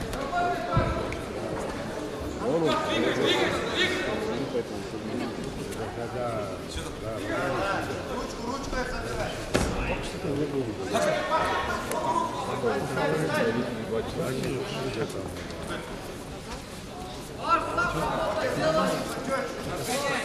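A crowd of spectators talks and calls out in a large echoing hall.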